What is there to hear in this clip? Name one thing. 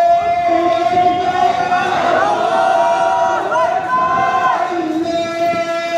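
A group of young men shout and chant loudly nearby, outdoors.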